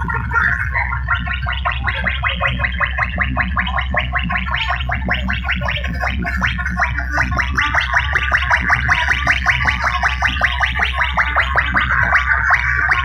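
Loud dance music with a fast, steady beat booms from large speakers.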